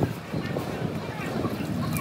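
A hand sloshes in a pan of oil.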